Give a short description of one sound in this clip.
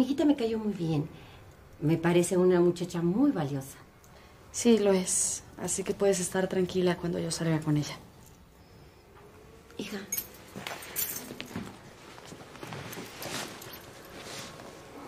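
A middle-aged woman speaks calmly and earnestly, close by.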